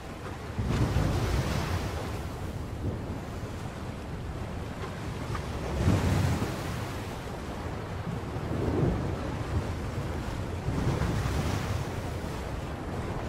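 Rough sea waves surge and crash nearby in heavy surges.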